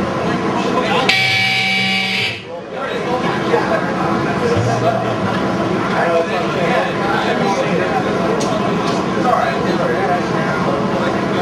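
A loud metal band plays distorted guitars and pounding drums through a booming sound system.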